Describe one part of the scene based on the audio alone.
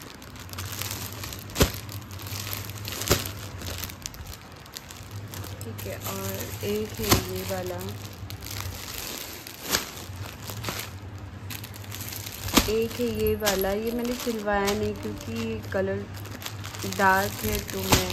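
Plastic wrapping crinkles and rustles as hands handle packages.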